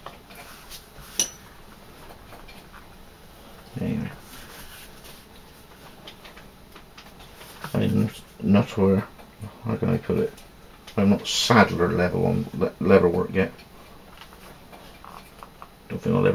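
Hands rustle and slide pieces of leather on a cutting mat.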